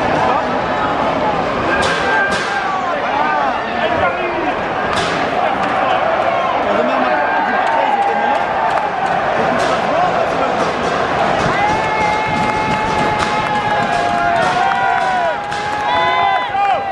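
Young men shout and call out to each other nearby, outdoors.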